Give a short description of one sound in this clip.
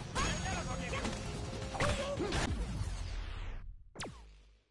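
Fighting game combat sounds with hits and whooshes play loudly.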